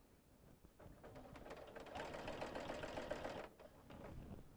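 A sewing machine hums as it stitches.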